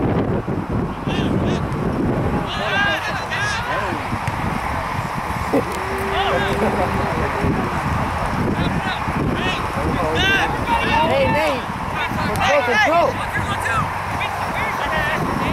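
Young men shout to each other from across a field.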